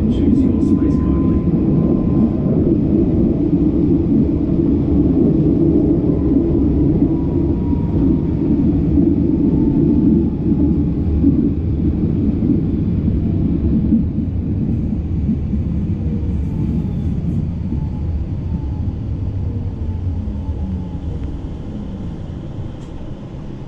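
A train rumbles steadily along the tracks, slowly easing off.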